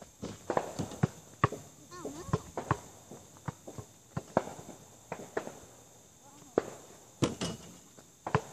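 Basketballs bounce on hard ground with sharp thuds.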